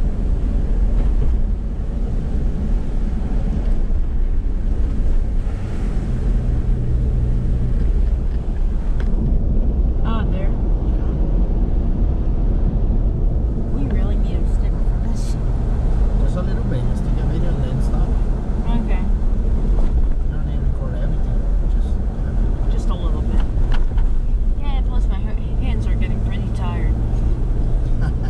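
Wind rumbles against the moving vehicle.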